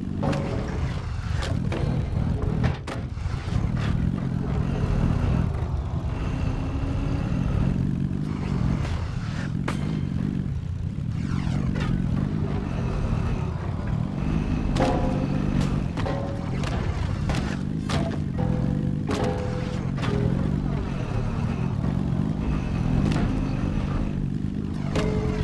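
Parts of a vehicle clank and knock as it bumps over rough ground.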